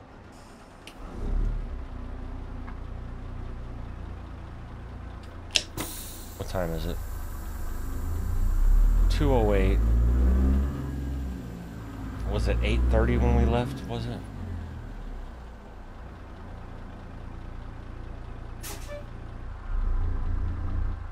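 A heavy truck engine rumbles low, revving up and settling again.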